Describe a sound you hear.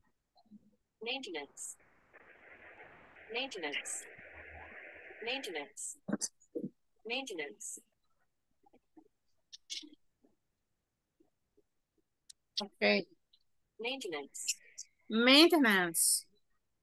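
A woman speaks calmly over an online call, in short phrases with pauses.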